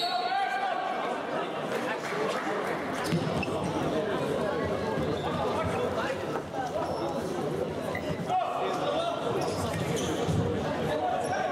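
Trainers squeak on a hard indoor court.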